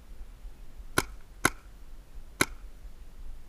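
A paintball marker fires a few sharp shots close by.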